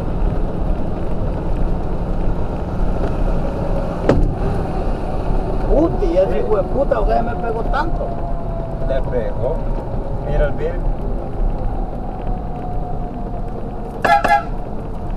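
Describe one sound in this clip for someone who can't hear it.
A vehicle engine and tyres on the road rumble steadily, heard from inside the cab.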